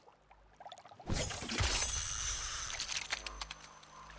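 A spear splashes into water.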